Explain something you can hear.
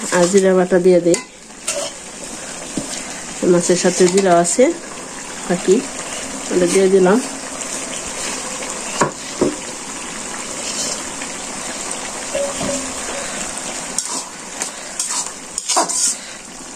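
A metal spoon scrapes and clinks against a pan.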